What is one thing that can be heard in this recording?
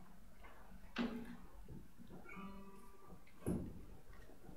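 A wooden knock sounds as a guitar is set down on its stand.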